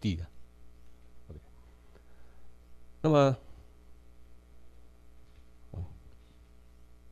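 A man speaks in short bursts through a microphone.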